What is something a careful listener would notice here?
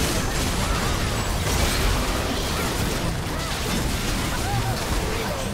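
Spell effects and weapon hits clash rapidly in a game battle.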